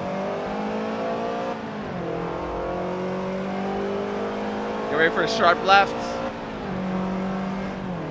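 A racing car engine roars steadily, dropping in pitch at each gear change.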